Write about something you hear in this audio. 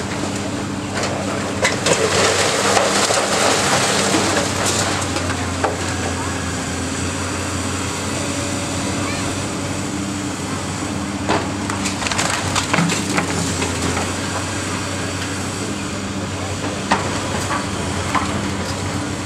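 Rubble crashes and clatters as a building is torn down.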